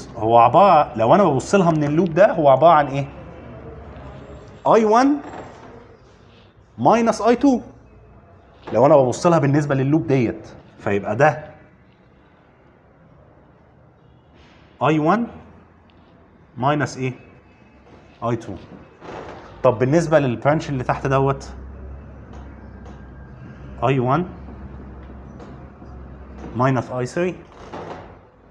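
A man lectures calmly, his voice close.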